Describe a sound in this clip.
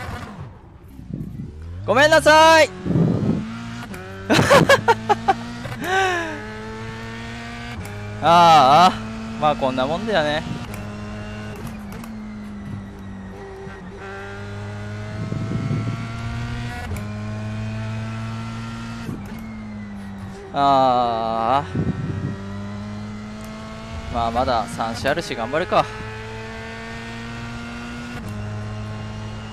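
A racing car engine drones steadily, rising and dropping in pitch through the gears.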